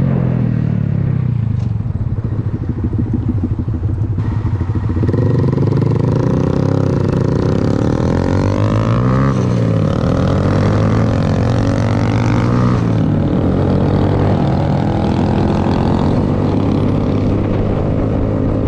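A motorcycle engine idles close by, then revs and accelerates hard.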